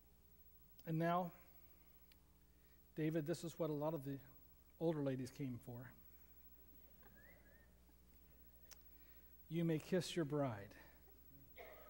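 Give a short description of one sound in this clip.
A middle-aged man speaks calmly and clearly in an echoing hall.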